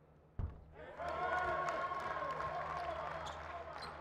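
A large crowd cheers loudly in an echoing arena.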